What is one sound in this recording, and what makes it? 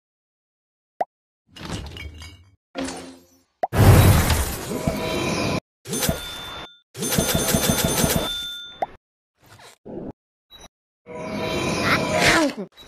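Cheerful game jingles and chimes play in quick bursts.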